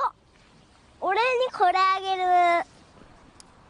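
A young boy speaks in a high voice.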